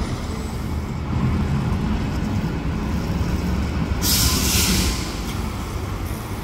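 A second bus rumbles past, its engine droning.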